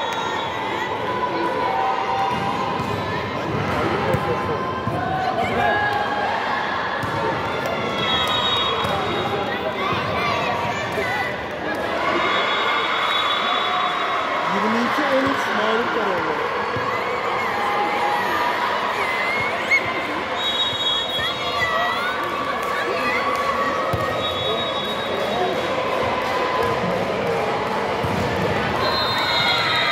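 Young girls shout and call out to each other in a large echoing hall.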